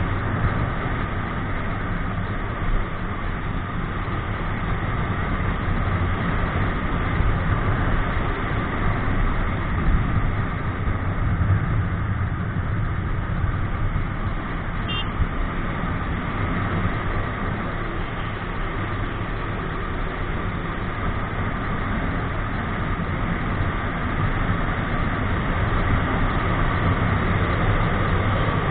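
Wind rushes past loudly.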